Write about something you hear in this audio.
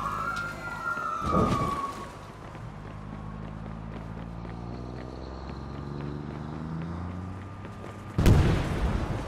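A bus engine rumbles as it pulls away.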